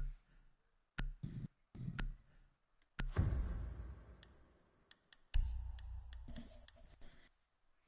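Sharp interface clicks sound several times.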